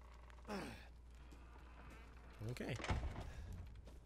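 A wooden gate creaks open.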